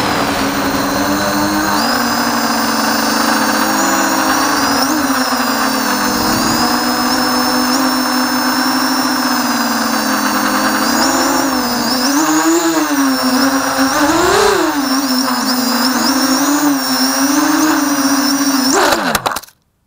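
Small drone propellers whine steadily, their pitch rising and falling as the drone flies.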